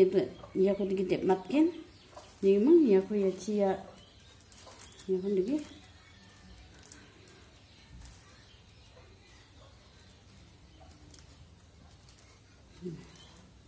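Plastic cords rustle and click softly as they are woven by hand.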